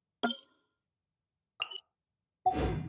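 A soft menu chime clicks twice.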